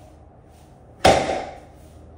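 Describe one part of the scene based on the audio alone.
A loaded barbell drops onto a rubber floor with a heavy thud.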